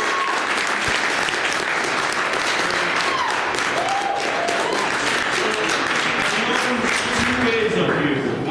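A guitar is strummed.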